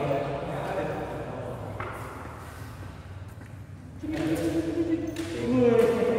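Shoes squeak and tap on a hard floor in a large echoing hall.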